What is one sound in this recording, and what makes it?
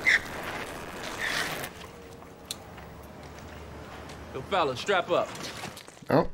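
Young men talk casually outdoors.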